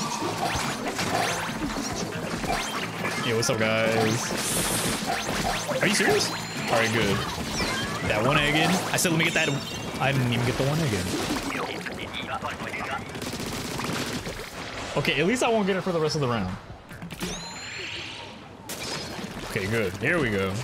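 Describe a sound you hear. Game sound effects splash and pop.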